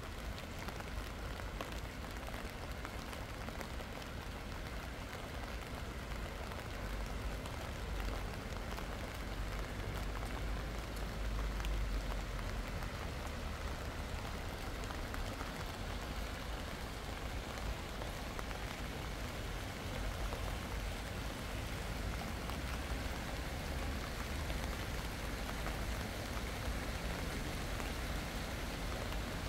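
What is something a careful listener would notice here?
Steady rain patters on a wet path outdoors.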